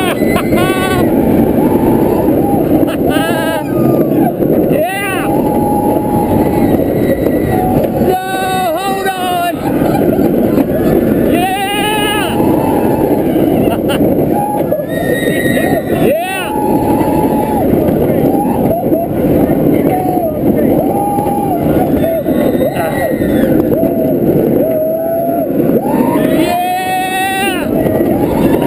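Wind roars loudly past at high speed, outdoors.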